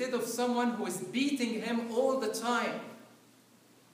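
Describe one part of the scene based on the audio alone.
An elderly man chants loudly through a microphone in an echoing hall.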